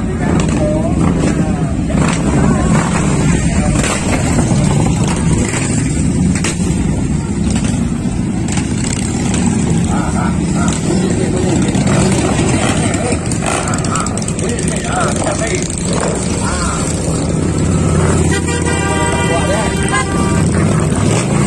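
Motorcycle engines rumble and idle nearby.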